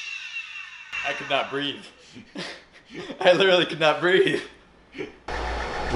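A young man laughs and talks with animation close by.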